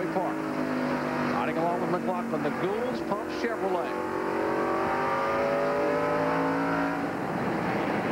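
A race car engine roars loudly from inside the cockpit.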